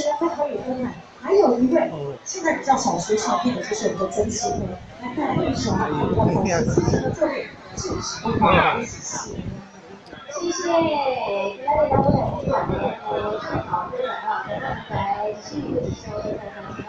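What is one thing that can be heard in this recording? A crowd of men and women chatters loudly all around.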